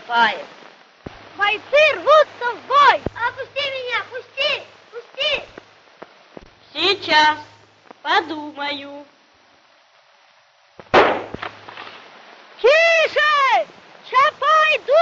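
Another young boy speaks excitedly.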